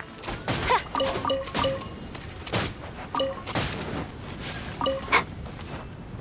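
Small chimes ring out as items are picked up.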